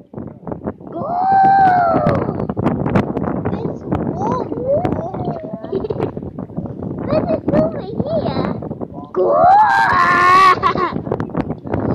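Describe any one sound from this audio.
A young girl squeals with laughter.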